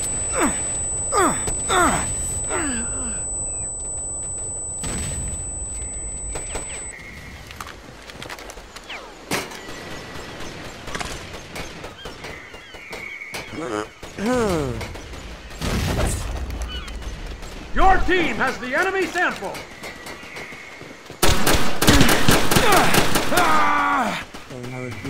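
Pistols fire in rapid bursts of shots.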